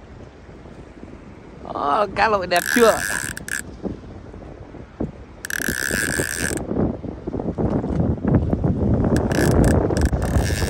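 Choppy water slaps and splashes against a boat's hull.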